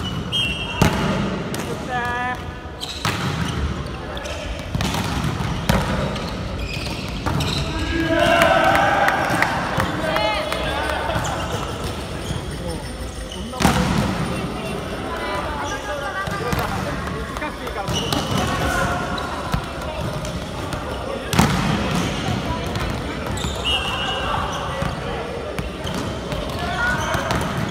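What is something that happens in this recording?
A volleyball is struck sharply, again and again, in a large echoing hall.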